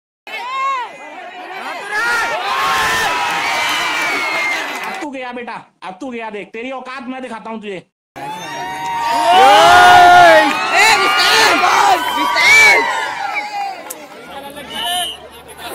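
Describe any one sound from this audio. A large crowd shouts and cheers loudly outdoors.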